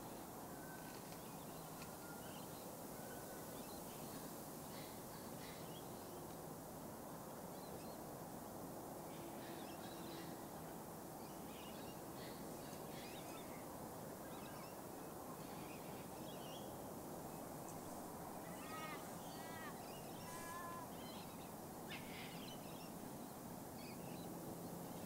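Leaves rustle softly in a light breeze.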